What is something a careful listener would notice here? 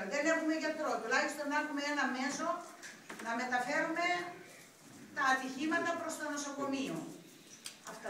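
A man speaks loudly to a gathering in a room with some echo.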